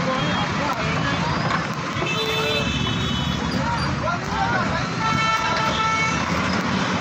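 A diesel engine of an excavator rumbles steadily nearby.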